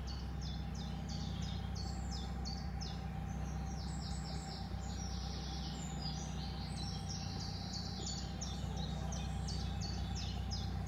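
A boat engine chugs with a steady low hum.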